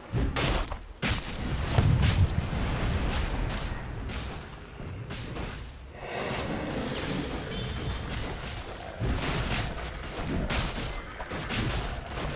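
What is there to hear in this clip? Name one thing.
Spell effects and weapon blows crash and whoosh in a fast-paced battle.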